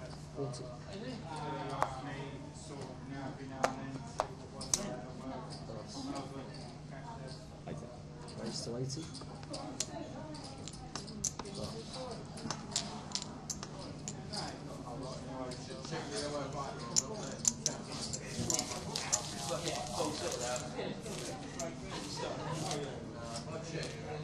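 Several men talk in low voices nearby.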